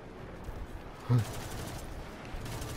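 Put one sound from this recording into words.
A rapid burst of gunfire rings out close by.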